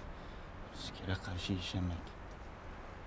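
A young man mutters quietly close by.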